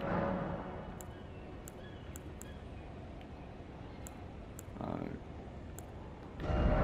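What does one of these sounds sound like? Short soft clicks tick now and then.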